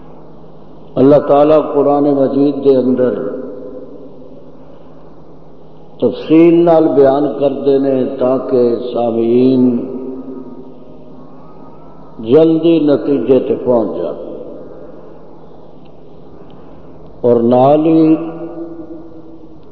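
An elderly man preaches with fervour in short bursts through a microphone.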